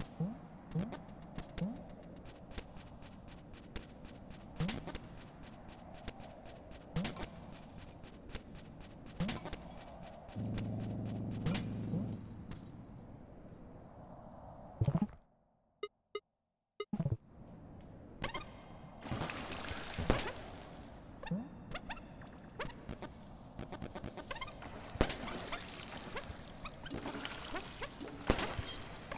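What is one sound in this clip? Short plopping game sound effects sound as a small creature hops about.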